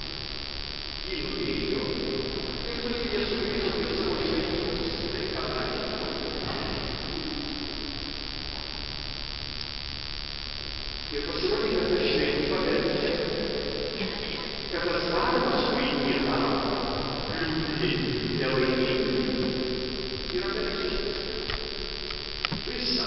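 A congregation sings slowly in a large echoing hall.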